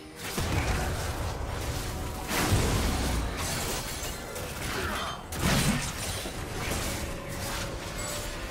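Game spell effects whoosh and burst in a busy fight.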